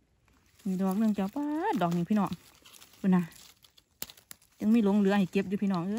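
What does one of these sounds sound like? Dry leaves rustle under a hand.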